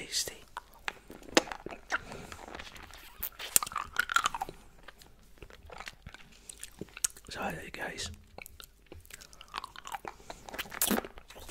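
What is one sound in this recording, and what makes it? A man sucks and licks candy close to a microphone, with wet smacking clicks.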